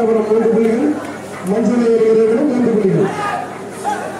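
A young man chants quickly.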